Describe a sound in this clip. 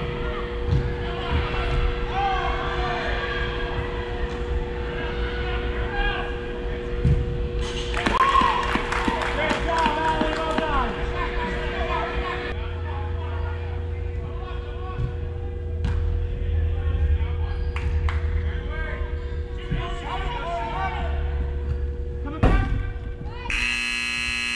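Players shout and call out to each other across a large echoing indoor hall.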